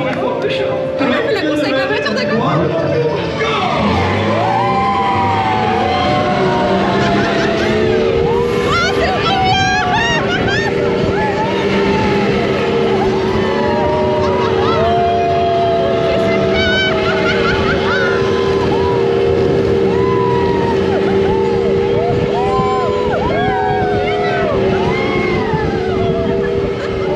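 Wind rushes loudly past open riders.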